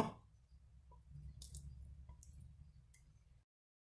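Diced ham drops and slides into a thick sauce.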